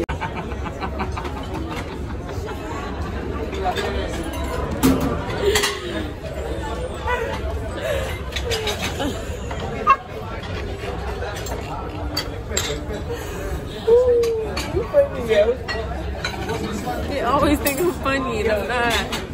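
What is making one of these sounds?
A young woman talks and laughs close to the microphone.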